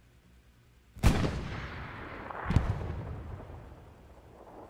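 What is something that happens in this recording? A rifle fires two loud shots that echo across open ground.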